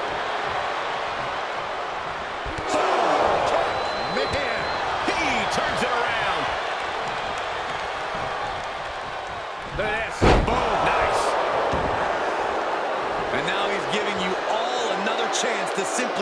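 A large crowd cheers and roars throughout, in a big echoing arena.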